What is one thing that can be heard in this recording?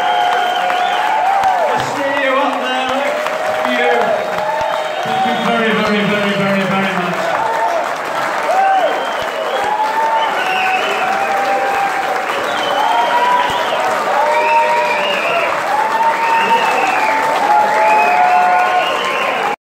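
A large crowd applauds loudly in a big echoing hall.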